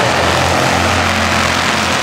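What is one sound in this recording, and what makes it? A race car roars past up close.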